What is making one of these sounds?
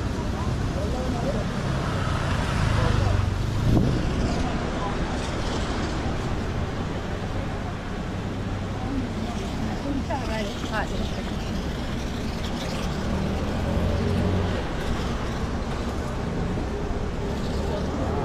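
Men and women chatter close by in a crowd.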